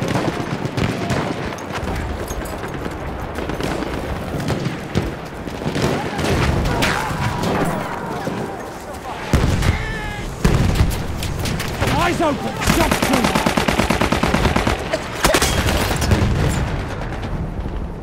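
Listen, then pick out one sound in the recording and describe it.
Explosions rumble and boom in the distance.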